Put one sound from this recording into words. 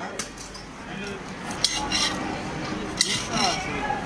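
A spoon scrapes and taps inside a metal container.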